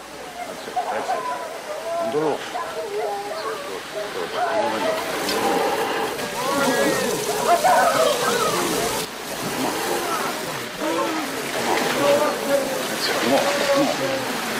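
Water sprays hard from a hose and splashes against a wooden wall.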